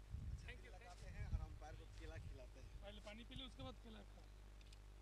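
Men talk quietly at a distance outdoors.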